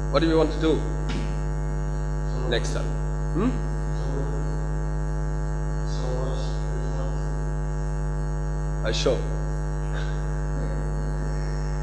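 A young man speaks through a microphone in short bursts with pauses.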